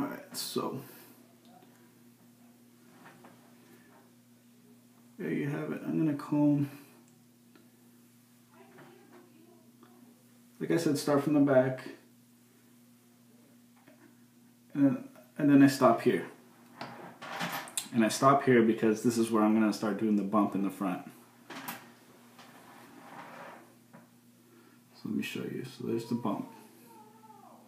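A young man talks calmly close by, in short bursts.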